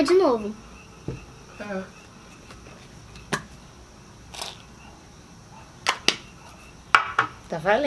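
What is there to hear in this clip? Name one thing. Plastic bottles clack and tap on a table.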